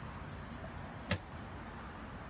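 A fuel filler flap snaps shut with a click.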